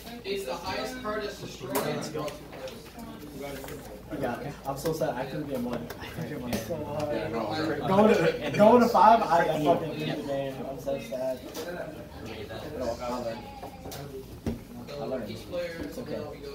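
Playing cards tap softly onto a table.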